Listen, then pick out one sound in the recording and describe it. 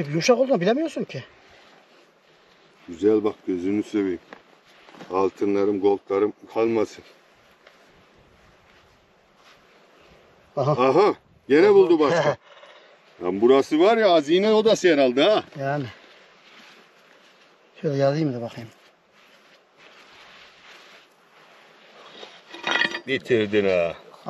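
A hand brushes and pats loose soil.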